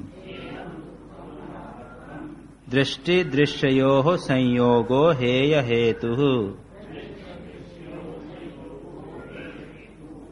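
An elderly man speaks calmly and quietly through a microphone.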